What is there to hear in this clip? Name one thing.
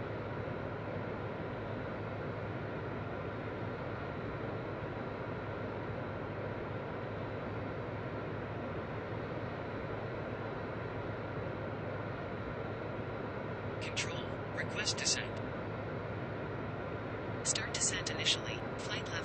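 Jet engines roar steadily in a cockpit.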